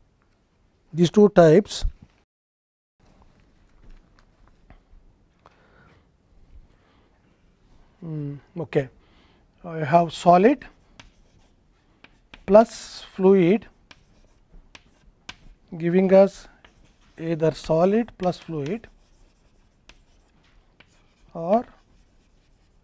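An older man speaks calmly in short phrases, close to a microphone.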